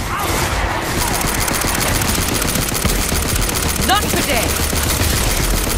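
A rapid-fire gun shoots in a fast, steady stream of shots.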